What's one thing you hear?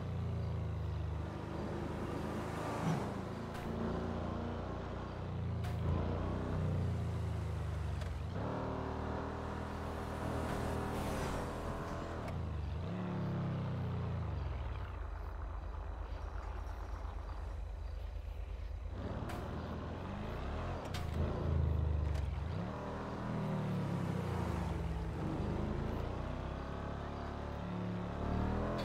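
A car engine revs hard and roars, rising and falling as the gears shift.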